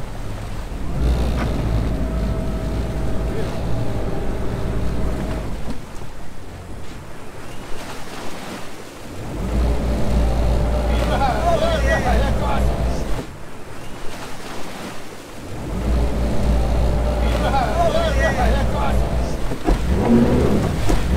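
Outboard motors roar loudly, surging and easing off in turns.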